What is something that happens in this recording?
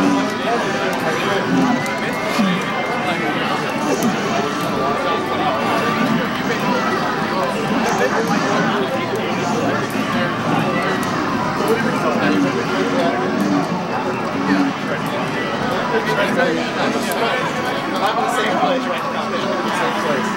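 Video game fight sounds of clashing blades and hits play through a television speaker.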